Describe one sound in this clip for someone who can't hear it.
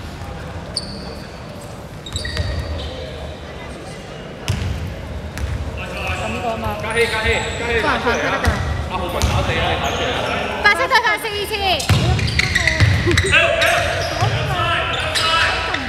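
Young men shout to each other in an echoing gym.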